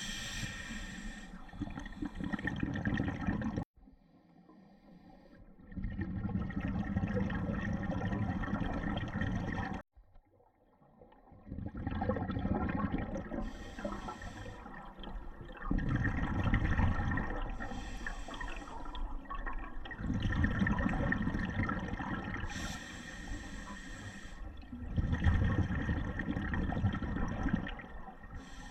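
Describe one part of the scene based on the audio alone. A diver's exhaled bubbles gurgle and rumble loudly underwater in repeated bursts.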